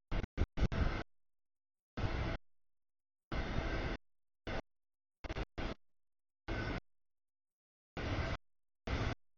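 A freight train rumbles and clatters past on the tracks.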